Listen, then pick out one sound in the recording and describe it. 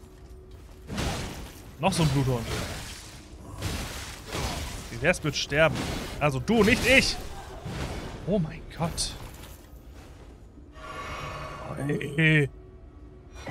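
Blades swing and clash in a fierce fight.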